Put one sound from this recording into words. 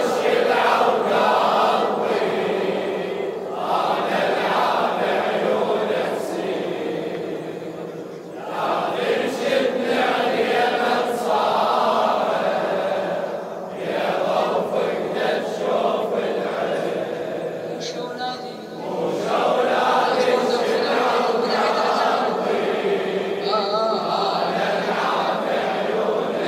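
A man sings a lament through a microphone.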